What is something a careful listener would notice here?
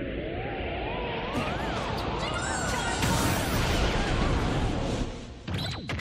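A powerful energy blast rumbles and roars.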